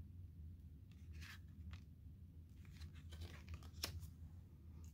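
Paper pages rustle softly as a book's flap is folded.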